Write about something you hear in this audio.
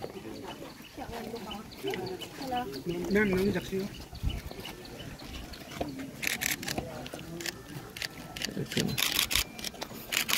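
A crowd of people murmurs nearby outdoors.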